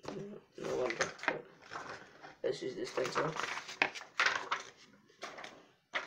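Paper rustles close by.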